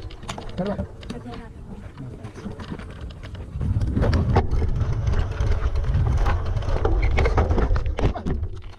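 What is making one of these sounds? Bicycle tyres crunch and rattle over loose rocks.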